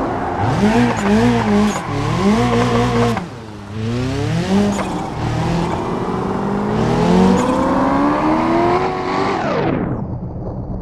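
A car engine roars, revving up and down as gears shift.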